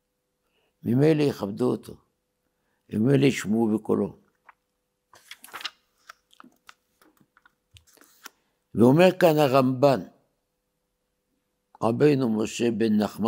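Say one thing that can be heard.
An elderly man speaks slowly and deliberately into a close microphone, in short phrases with pauses.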